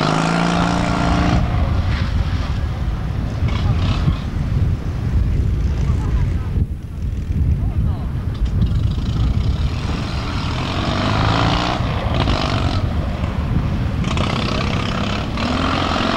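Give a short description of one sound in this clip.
An air-cooled two-cylinder Fiat 126 engine revs hard as the small car races through turns.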